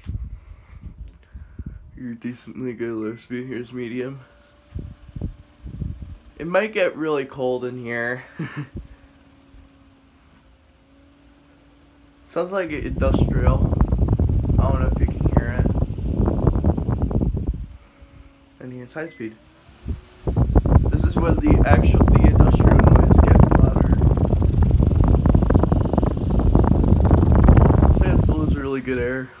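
A ceiling fan hums and whirs steadily.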